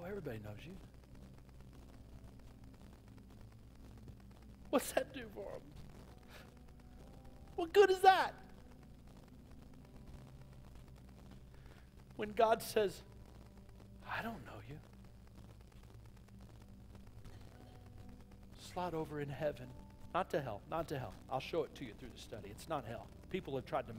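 A middle-aged man speaks with animation through a microphone, pausing often.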